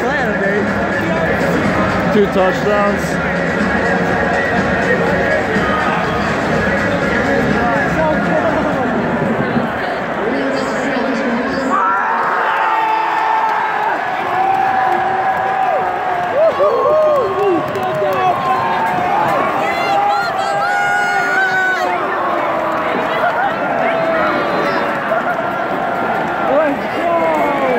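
A large stadium crowd roars and cheers loudly all around.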